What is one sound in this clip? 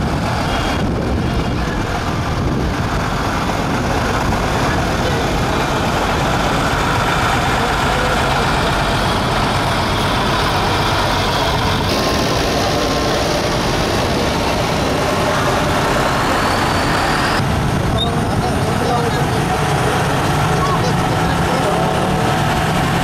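Tractor engines rumble as they roll slowly past close by.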